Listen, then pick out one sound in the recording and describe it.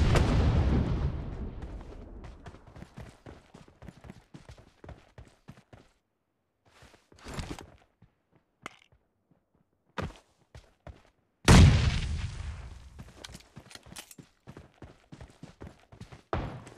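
Footsteps patter quickly over ground.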